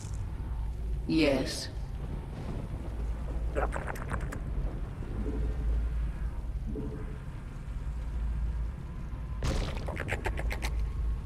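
Alien creatures chitter and squelch in short bursts.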